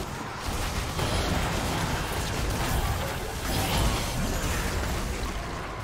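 Game spell effects whoosh and crackle in a busy fight.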